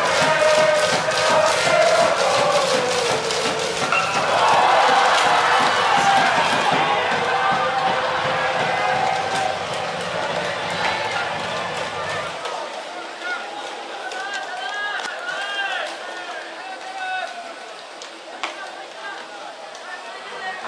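A large crowd of young men chants and cheers loudly in an open stadium.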